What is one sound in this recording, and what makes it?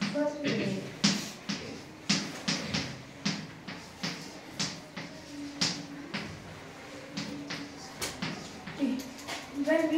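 Chalk taps and scrapes on a blackboard in short, quick strokes.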